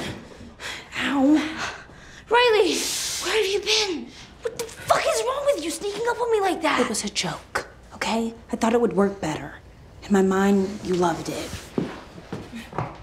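A boy speaks urgently nearby.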